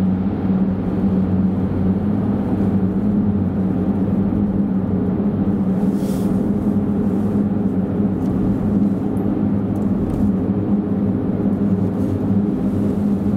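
Tyres roar on the road surface inside an echoing tunnel.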